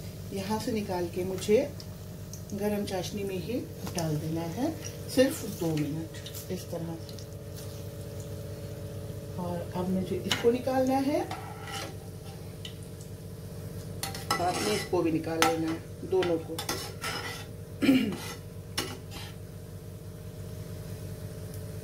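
Hot oil sizzles and bubbles steadily in a pan.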